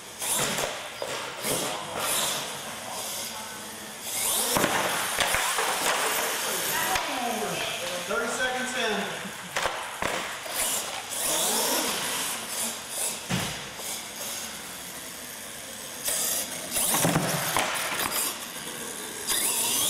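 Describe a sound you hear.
Plastic tyres skid and bump on a hard floor.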